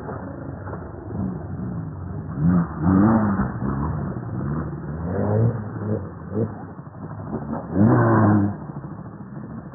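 A quad bike engine revs up and down close by.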